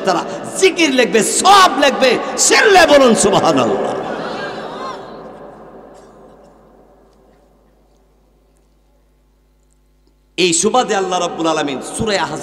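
A middle-aged man preaches loudly into a microphone, chanting with strong feeling, his voice echoing through loudspeakers.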